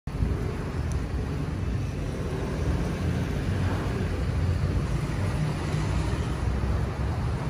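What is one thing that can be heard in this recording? Rain falls steadily on wet pavement outdoors.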